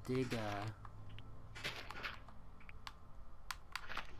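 Dirt crunches as a block is dug out.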